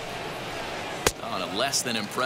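A baseball smacks into a catcher's mitt once.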